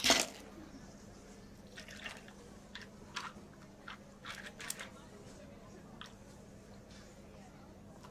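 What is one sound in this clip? Milk pours into a cup.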